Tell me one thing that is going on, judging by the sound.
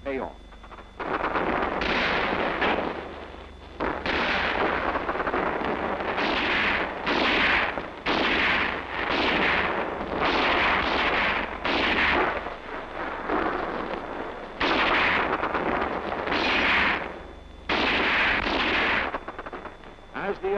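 Machine guns fire in long rattling bursts outdoors.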